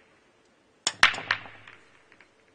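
Billiard balls crack loudly against each other as the rack breaks and scatters.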